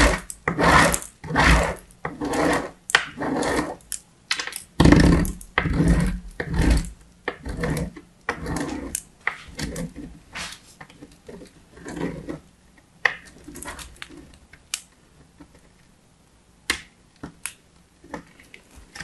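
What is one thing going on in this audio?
Soap scrapes rhythmically against a metal grater.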